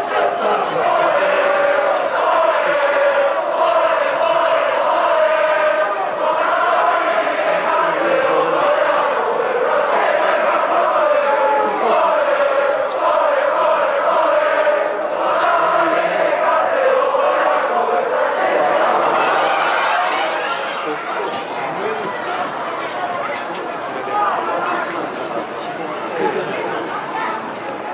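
A large crowd chants and sings together loudly in an open stadium.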